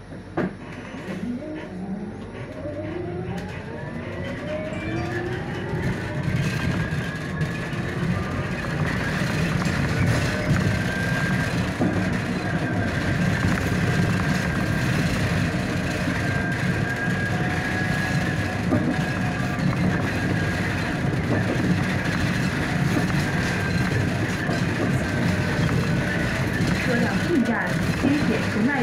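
A bus engine rumbles and rises in pitch as it speeds up.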